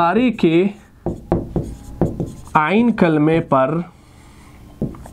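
A marker taps and scratches on a board.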